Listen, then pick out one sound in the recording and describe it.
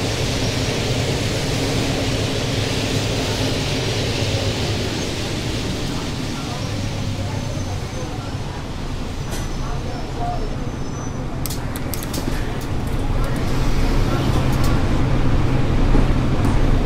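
A bus engine hums and rumbles steadily as the bus drives and slows to a stop.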